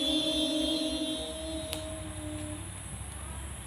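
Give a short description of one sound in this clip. Young children's voices sing a prayer together, close by.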